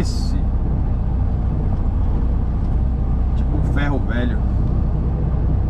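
A vehicle engine rumbles low and steady while driving slowly.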